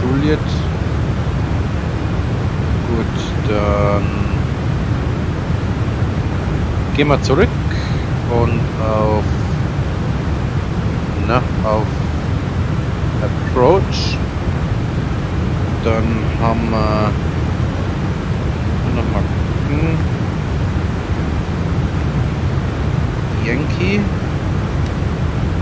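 A jet engine drones steadily in the background.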